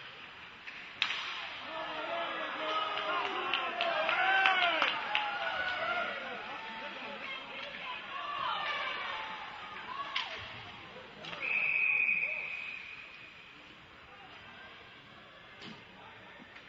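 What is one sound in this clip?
A hockey stick strikes a puck with a sharp crack.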